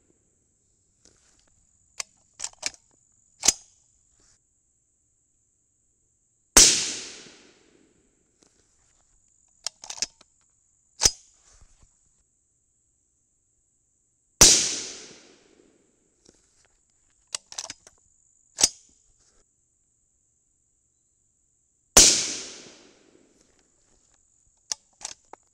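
Metal parts of a rifle click and clack between shots.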